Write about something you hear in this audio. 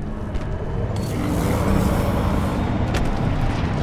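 A magical burst whooshes and crackles loudly.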